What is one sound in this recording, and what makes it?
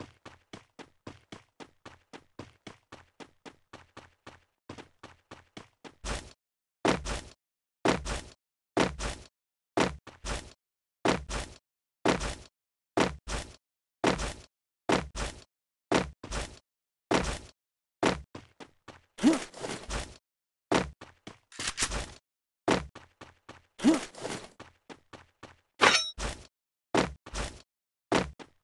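Running footsteps thud in quick, even steps.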